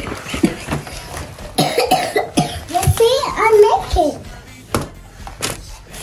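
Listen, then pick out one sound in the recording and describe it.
Cardboard rustles as a box is opened and handled.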